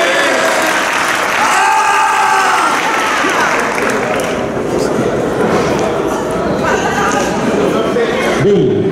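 A crowd chatters and cheers in a large echoing hall.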